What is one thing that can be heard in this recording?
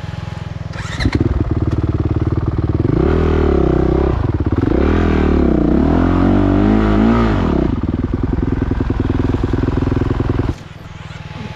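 A motorcycle engine revs hard and roars as the bike climbs.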